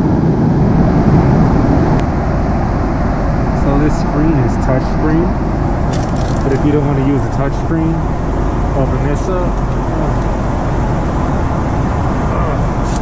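A steady low roar of aircraft engines fills the cabin.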